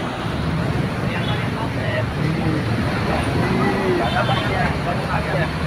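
Motorcycle engines idle and putter close by.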